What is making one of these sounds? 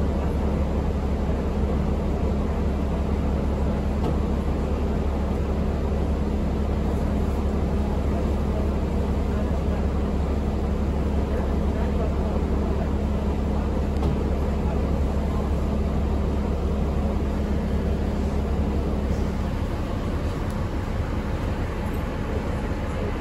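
The bus interior rattles and creaks as it rolls along.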